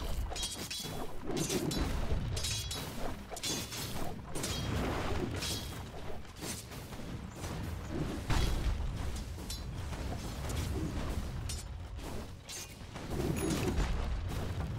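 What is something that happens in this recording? Magic spells crackle and clash in a fight.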